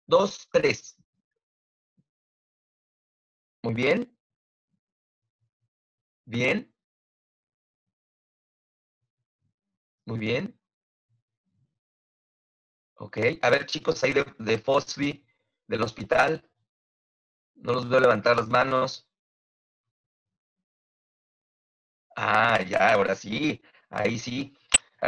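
A man speaks over an online call in short bursts, with pauses.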